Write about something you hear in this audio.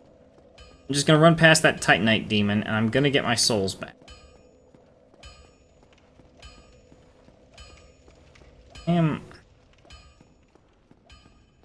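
Footsteps thud steadily on stone.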